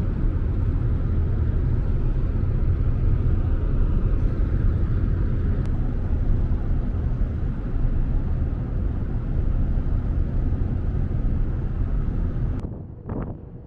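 Wind buffets and rumbles loudly outdoors.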